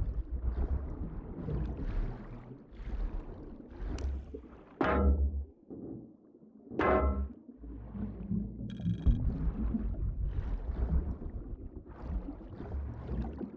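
A muffled underwater rumble goes on throughout.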